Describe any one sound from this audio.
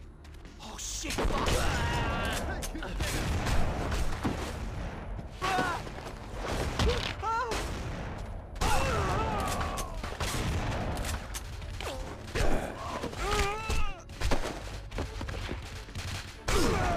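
A young woman talks with animation into a microphone, close up.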